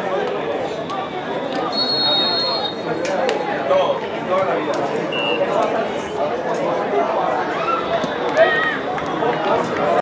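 A crowd of young men and women chatter and call out outdoors.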